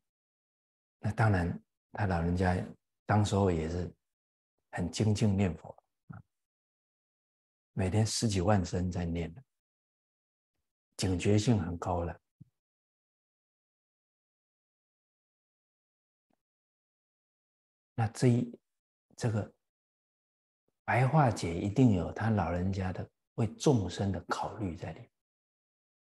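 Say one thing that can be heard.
A middle-aged man speaks calmly and clearly into a close microphone, with pauses.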